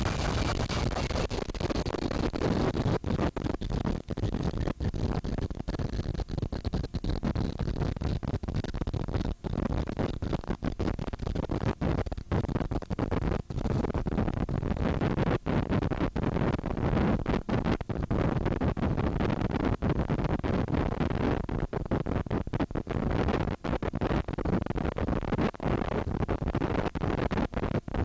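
A jet engine roars loudly nearby.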